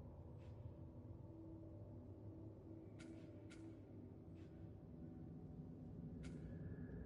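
Short soft clicks of a game menu sound now and then.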